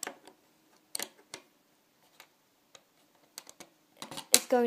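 Plastic pieces click and tap on a wooden surface.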